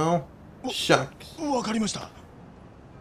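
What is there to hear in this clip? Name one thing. A young man speaks nervously, close by.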